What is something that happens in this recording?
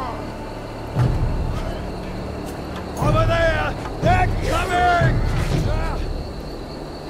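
Low rumbling blasts of battle sound in bursts.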